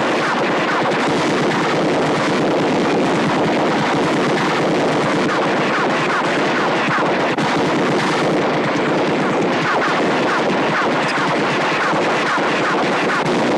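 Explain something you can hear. A machine gun fires in a rapid, unbroken stream of shots.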